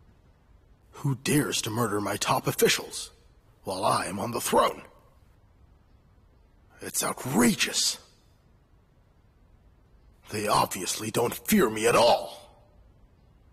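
A man speaks slowly and deliberately, close by, with pauses between phrases.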